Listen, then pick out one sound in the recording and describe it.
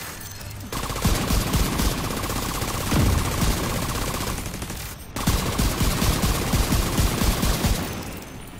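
Enemy gunfire pops back.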